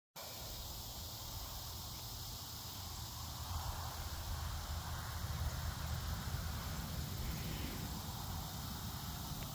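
Wind gusts outdoors and rustles the leaves and grass.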